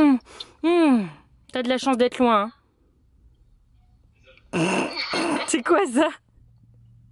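A young child squeals and babbles through a phone call.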